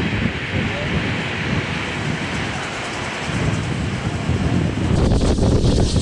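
Steam locomotives puff heavily as they pull away.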